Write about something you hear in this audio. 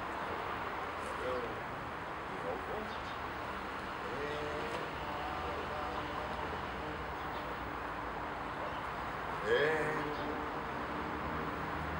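An elderly man speaks calmly, giving instructions outdoors.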